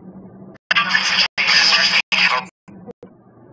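A mobile phone plays a loud ringtone.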